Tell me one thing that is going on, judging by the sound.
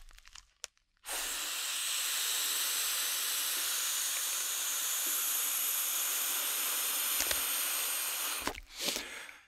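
A man blows air into a plastic bag close to a microphone.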